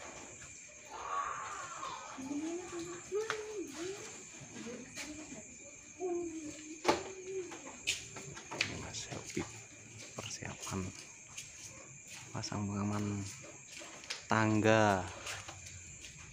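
A man talks from up a ladder.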